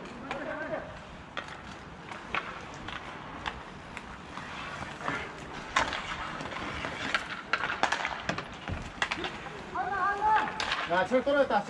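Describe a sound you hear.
Hockey sticks clack sharply against a ball, again and again.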